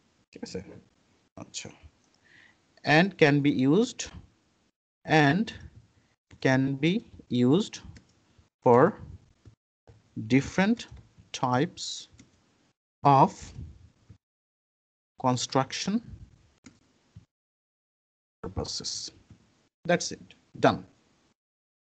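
A man speaks calmly and steadily into a microphone, close by.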